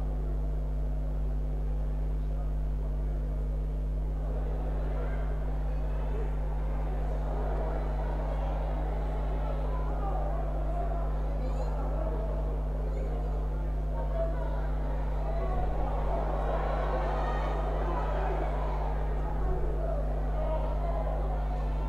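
A distant crowd murmurs and cheers in an open stadium.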